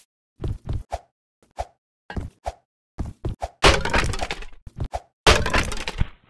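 Footsteps thump quickly across a wooden rope bridge.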